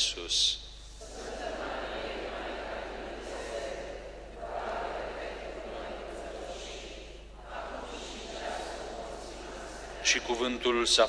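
A crowd of people murmur a response together.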